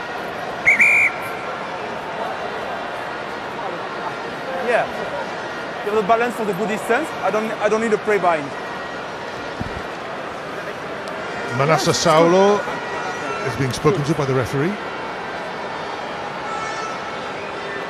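A large stadium crowd murmurs steadily in the background.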